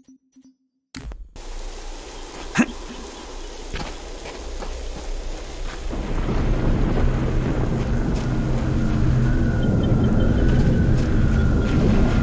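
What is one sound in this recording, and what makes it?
Game ambience rumbles loudly with wind.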